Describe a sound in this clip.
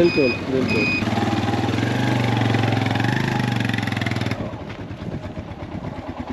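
A motorcycle engine runs steadily close by, then fades as it rides away.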